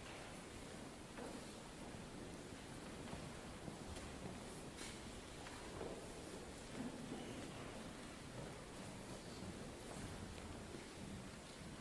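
A group of men chants softly in an echoing hall.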